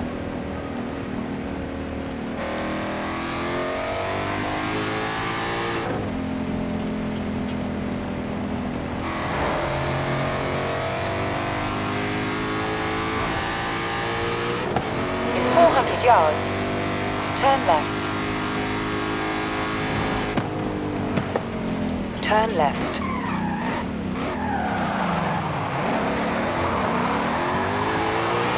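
A powerful car engine roars and revs up through the gears.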